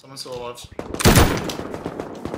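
A gun fires once loudly.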